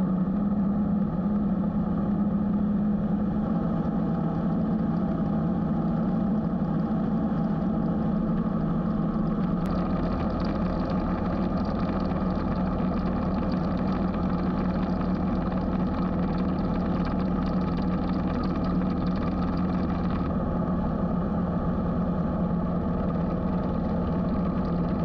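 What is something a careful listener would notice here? A motorcycle engine drones steadily at cruising speed.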